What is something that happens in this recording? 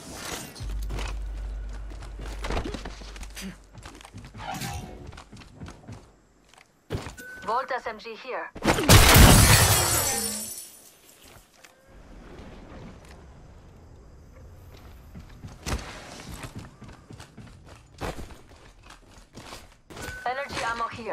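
Footsteps clatter quickly on metal floors.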